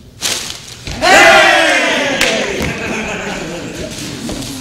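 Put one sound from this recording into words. A man calls out loudly on a stage.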